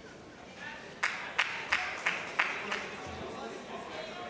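A crowd in a large hall applauds briefly.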